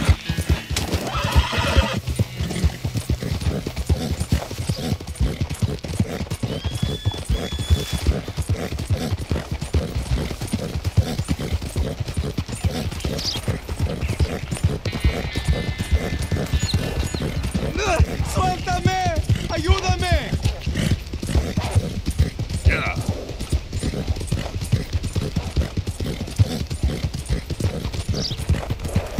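A horse gallops with rapid, heavy hoofbeats on a dirt track.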